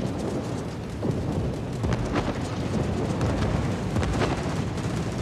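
Heavy naval guns fire in loud booming blasts.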